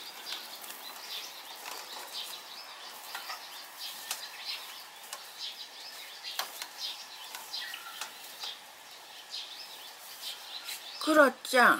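Two cats scuffle and rustle on a mesh hammock.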